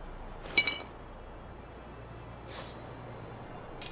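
A sword scrapes out of its sheath.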